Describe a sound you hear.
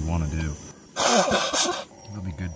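A man blows his nose into a cloth.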